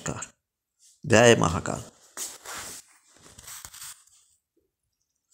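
An elderly man speaks close to a phone microphone.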